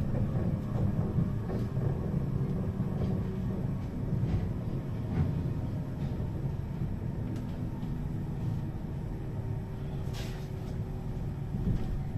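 A bus engine hums and rumbles steadily while the bus drives along.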